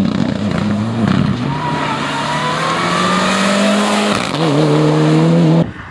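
Gravel and dirt spatter as a car slides past.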